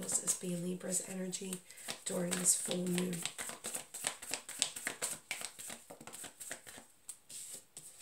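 Playing cards riffle and flick rapidly as a deck is shuffled.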